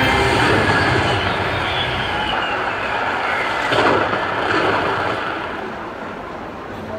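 A slot machine plays bright, jingling bonus music and chimes.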